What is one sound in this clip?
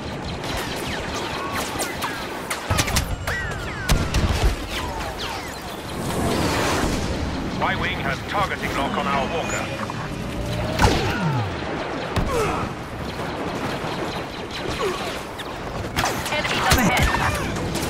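Laser blasters fire in quick zapping bursts.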